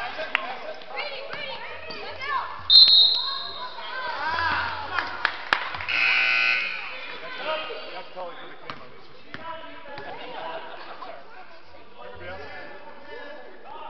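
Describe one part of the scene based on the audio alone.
Spectators chatter and cheer in an echoing gym.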